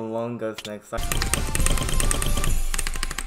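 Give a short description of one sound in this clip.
Fast electronic game music plays.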